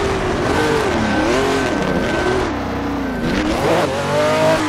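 A V12 Formula 1 car's engine blips its throttle on downshifts while braking.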